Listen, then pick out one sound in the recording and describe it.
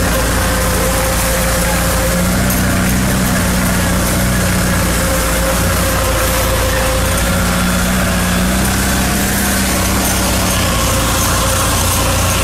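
Water sprays hard from fire hoses with a steady hiss.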